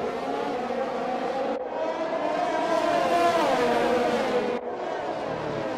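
Racing car engines whine at high pitch as they speed past.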